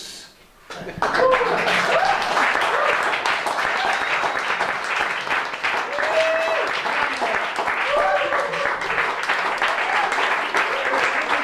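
A melodica plays a reedy melody.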